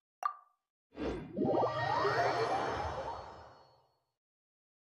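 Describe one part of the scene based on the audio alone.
A bright magical whoosh rings out and fades.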